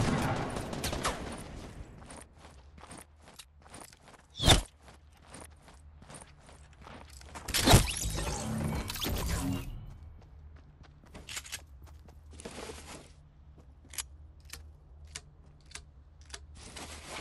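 Footsteps patter softly on a wooden floor.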